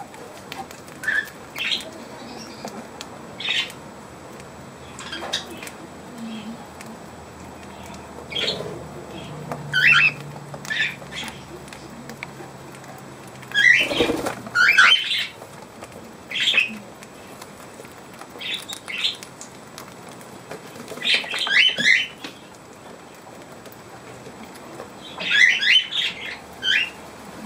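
Parrots chirp and squawk close by, on and off.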